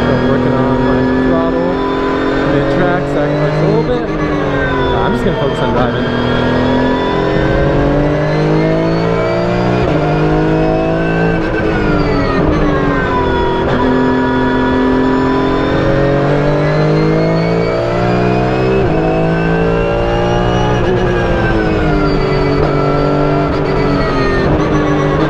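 A race car engine roars loudly from inside the cabin, rising and falling in pitch as it speeds up, shifts gears and slows for corners.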